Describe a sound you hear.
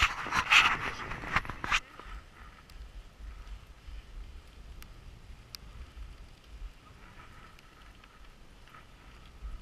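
Sled runners hiss and scrape over snow.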